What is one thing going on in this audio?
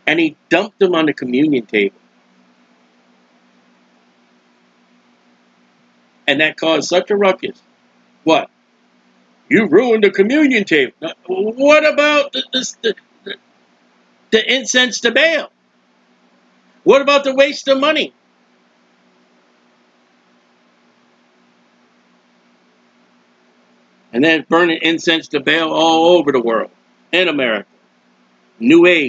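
A man speaks calmly and closely into a microphone, pausing often.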